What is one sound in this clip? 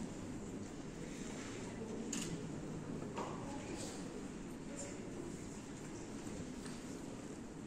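A children's choir sings together in a large echoing hall.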